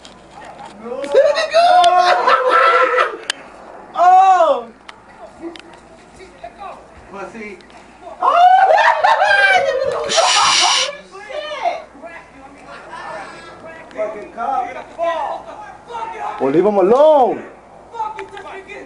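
Men shout loudly and angrily nearby, outdoors.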